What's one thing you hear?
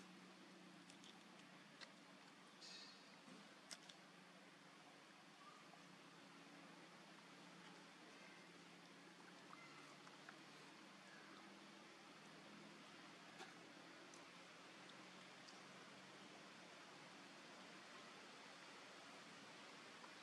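A monkey chews and munches on fruit with soft, wet smacking sounds.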